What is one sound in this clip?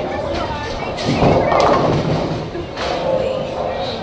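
Bowling pins clatter as a ball strikes them.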